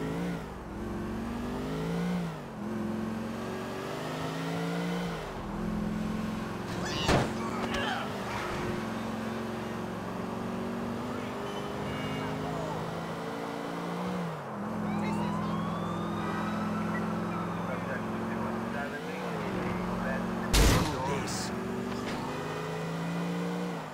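A car engine hums and revs up and down as gears change.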